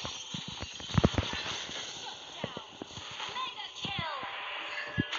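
Game spell effects crackle and boom in rapid bursts.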